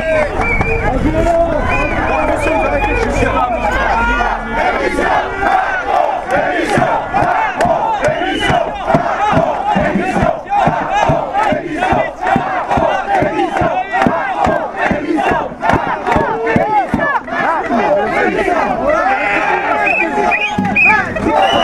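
A crowd of men and women sings and chants loudly together outdoors.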